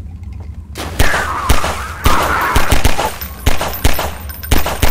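Pistol shots ring out in quick bursts.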